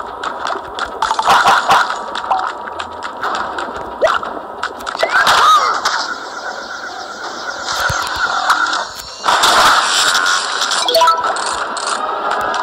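Cartoon splashes, zaps and pops sound in quick bursts.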